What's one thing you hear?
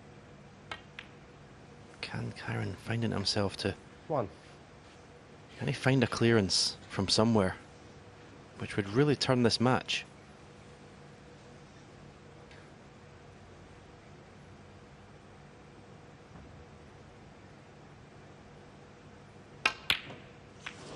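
Snooker balls knock together with a crisp click.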